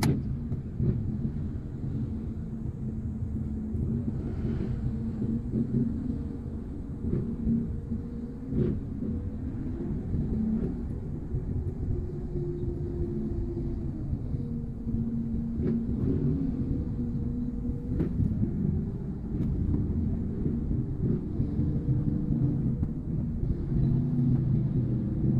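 A car engine idles and hums low from inside a car.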